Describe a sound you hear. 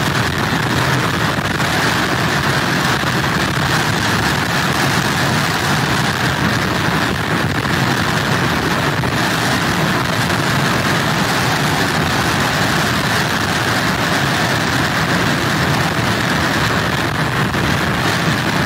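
Heavy waves crash and surge against wooden pilings.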